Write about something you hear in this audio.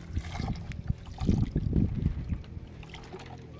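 Water pours from a jug into a basin.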